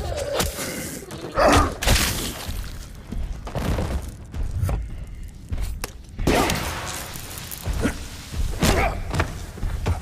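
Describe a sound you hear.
A chainsaw tears through flesh with wet splattering.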